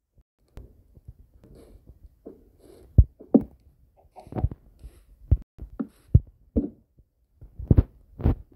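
Wooden blocks thud softly as they are placed one after another.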